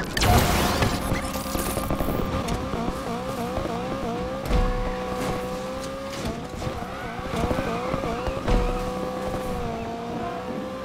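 A sports car engine revs hard and shifts up through the gears.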